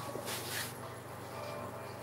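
A paintbrush brushes softly across a canvas.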